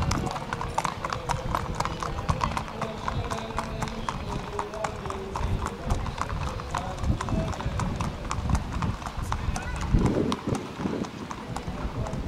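Horses' hooves clop on a hard path.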